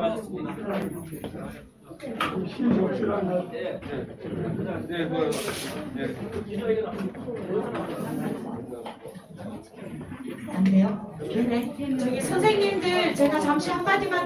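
Several men talk with one another nearby, in a room full of chatter.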